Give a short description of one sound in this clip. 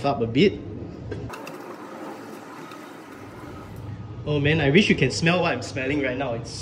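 A spatula scrapes and stirs rice in a metal pot.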